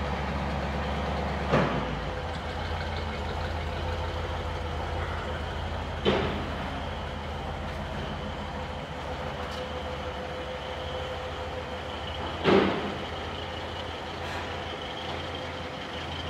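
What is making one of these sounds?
A car engine idles steadily nearby.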